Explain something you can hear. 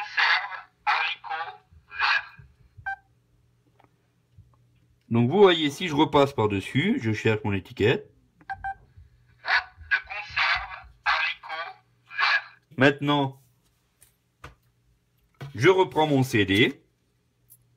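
A man's recorded voice speaks in short phrases through a small loudspeaker.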